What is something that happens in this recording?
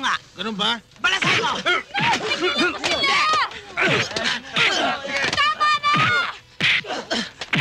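Several young men shout angrily and excitedly close by.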